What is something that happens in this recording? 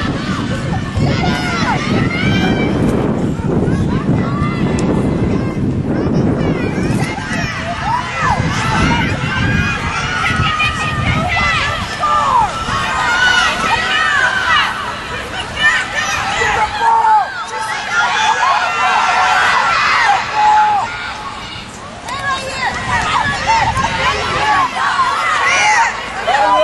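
Young women shout and call out to each other outdoors.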